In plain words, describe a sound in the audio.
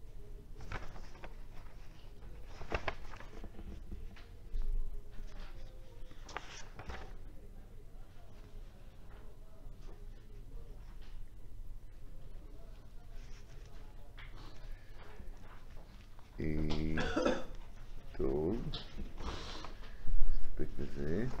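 Paper rustles and crackles as it is handled.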